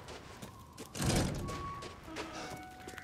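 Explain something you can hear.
A metal gate creaks and clangs open.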